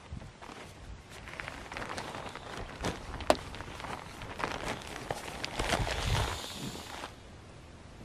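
A sleeping pad unrolls with a rustle against grass.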